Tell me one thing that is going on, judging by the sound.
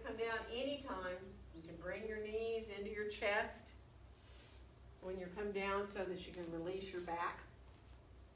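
A woman speaks calmly through a microphone.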